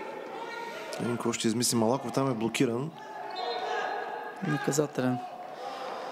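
Players shout loudly across an echoing indoor hall.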